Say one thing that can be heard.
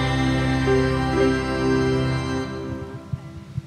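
Young women sing together through microphones.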